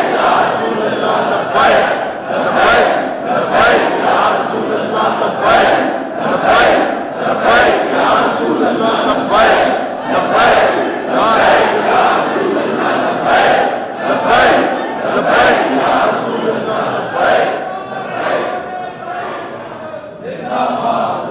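A large crowd of men chants loudly together in an echoing hall.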